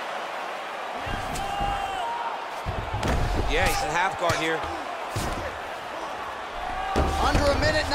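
Heavy punches thud against a body in quick bursts.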